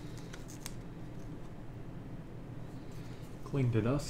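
Playing cards rustle and slide as hands shuffle them.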